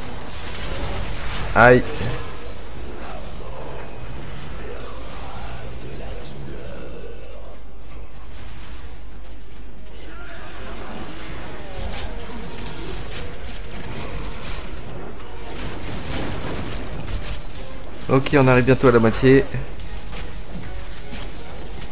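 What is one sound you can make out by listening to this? Magical blasts whoosh and crackle in quick bursts.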